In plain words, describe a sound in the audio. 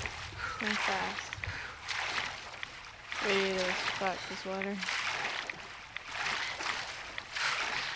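Water splashes in steady strokes.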